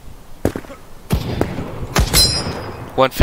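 A sniper rifle fires a sharp shot.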